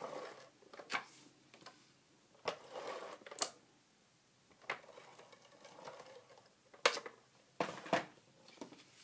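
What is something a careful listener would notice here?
A plastic case taps down onto paper on a table.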